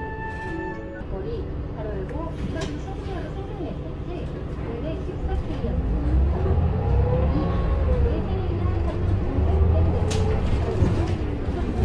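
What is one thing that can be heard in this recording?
A bus transmission whines, rising and falling in pitch.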